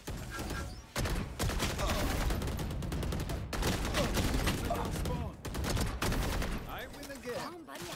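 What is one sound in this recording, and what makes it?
Rapid gunshots rattle in quick bursts.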